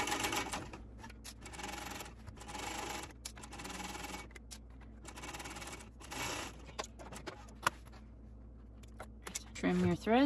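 Stiff fabric rustles as it is handled.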